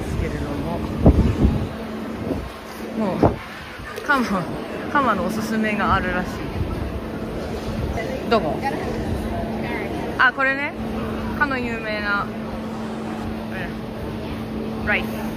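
A crowd of men and women chatters around the listener in a large, busy hall.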